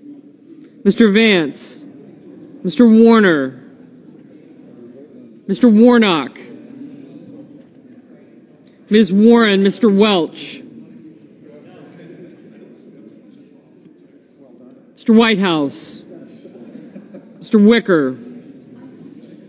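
Men and women murmur quietly in the background.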